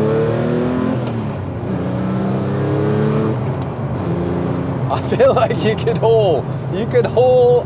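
Tyres rumble on a road.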